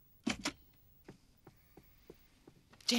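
Footsteps cross a room.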